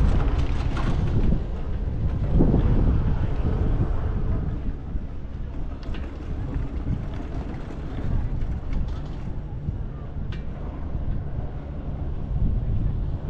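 Wind blows steadily against the microphone outdoors.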